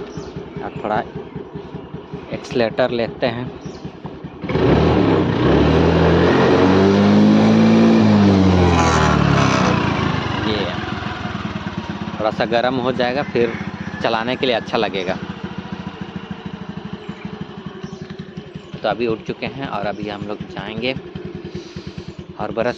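A scooter engine idles with a steady low hum.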